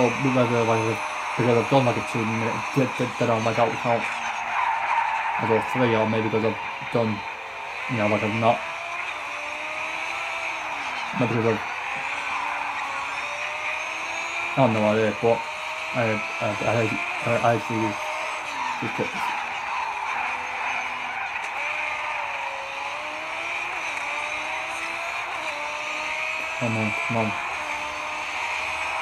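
A racing car engine roars, revving up and dropping through gear changes.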